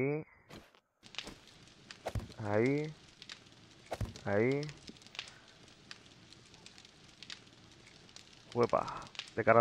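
A torch fire crackles and hisses steadily.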